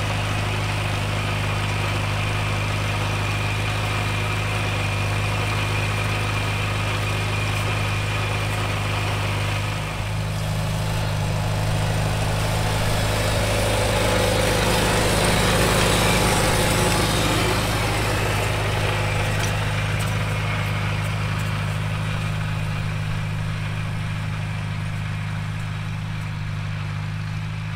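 Cultivator tines scrape and crunch through dry soil.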